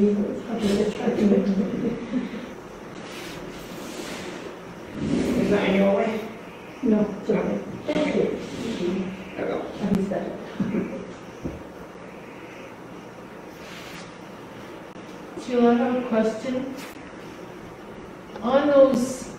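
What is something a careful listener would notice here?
An elderly woman speaks calmly, close by.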